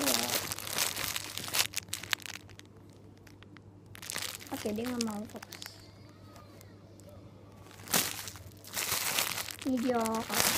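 Plastic wrapping crinkles and rustles between fingers.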